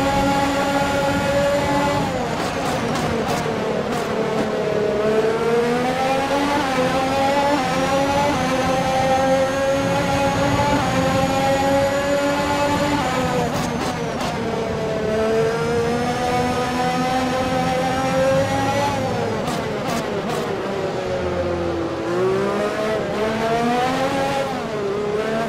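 A racing car engine roars loudly, its pitch rising with each gear and dropping sharply as it brakes.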